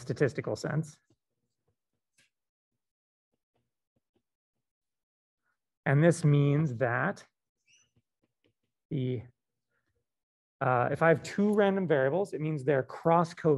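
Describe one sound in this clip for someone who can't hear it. A man speaks calmly through a microphone, in short phrases with pauses, as if explaining.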